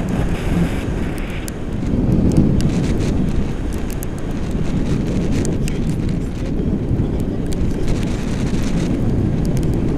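Strong wind rushes and buffets loudly against a microphone.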